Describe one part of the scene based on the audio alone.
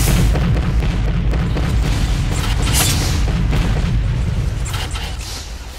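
Explosions and blasts boom loudly in a fight.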